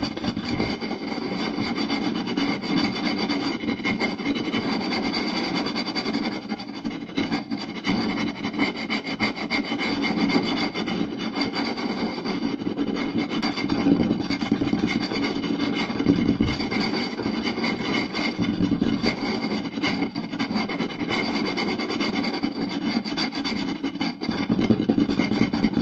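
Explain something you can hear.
Fingertips tap and drum rapidly on a wooden board, close up.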